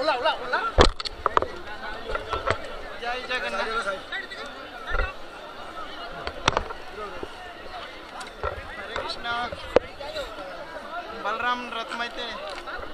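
A large outdoor crowd chatters and calls out all around.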